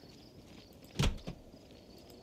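A door opens with a knock.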